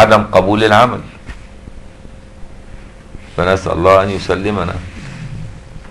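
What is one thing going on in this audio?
An elderly man speaks calmly and slowly, heard through a microphone.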